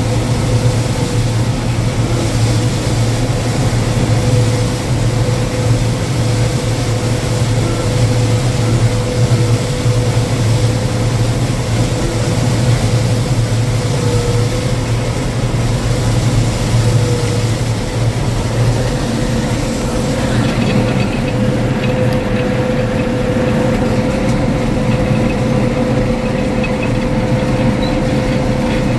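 A harvester's header rattles and whirs as it cuts dry crop.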